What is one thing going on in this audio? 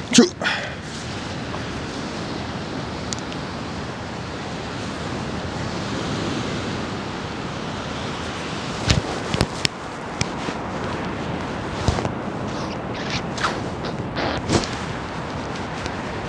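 Footsteps crunch on sandy ground.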